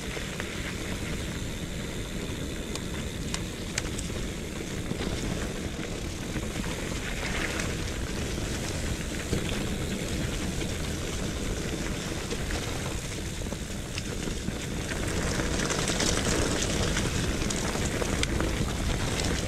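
Bicycle tyres crunch and rumble over a rough dirt trail.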